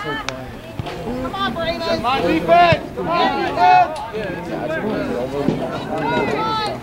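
Spectators nearby shout and cheer outdoors.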